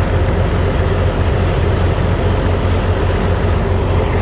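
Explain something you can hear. Water gushes from a hose onto wet sand.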